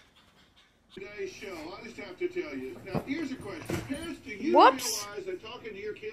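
A dog growls and snarls while playing.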